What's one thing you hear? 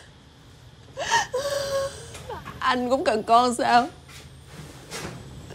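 A young woman speaks tearfully, sobbing.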